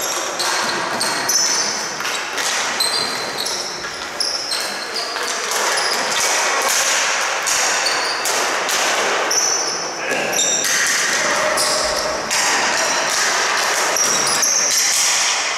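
Sticks clack against each other.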